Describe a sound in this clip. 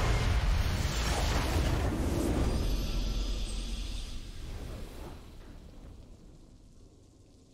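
A huge magical explosion booms and rumbles, then slowly fades away.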